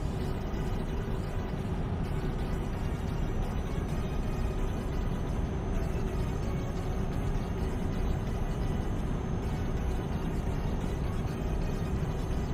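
Tyres roll steadily over a motorway.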